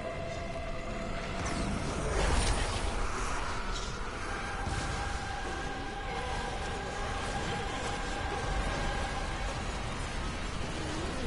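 Magic spells crackle and whoosh in a game battle.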